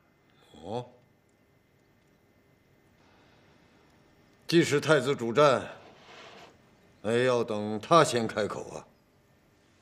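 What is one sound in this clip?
An elderly man speaks calmly and quietly, close by.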